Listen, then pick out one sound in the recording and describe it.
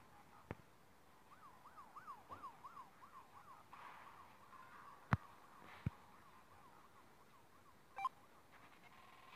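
A police siren wails in a quick, rising and falling pattern.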